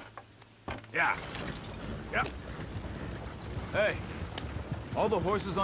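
A wagon rolls and rattles over rough ground.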